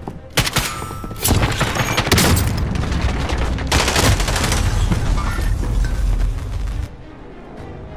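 Rapid gunshots fire close by.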